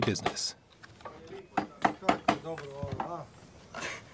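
Cardboard boxes knock and thump as a man stacks them.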